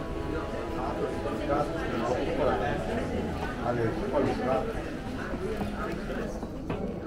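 Men and women chatter at tables nearby.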